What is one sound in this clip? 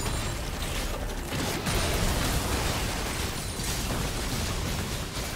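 Spell blasts, clashes and hits crackle and boom in a busy video game battle.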